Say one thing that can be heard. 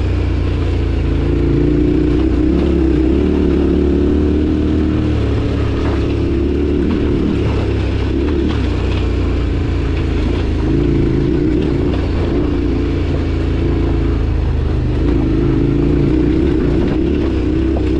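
A motorcycle engine hums steadily, rising and falling with the throttle.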